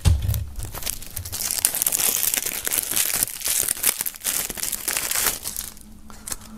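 Plastic wrap crinkles as hands tear it off.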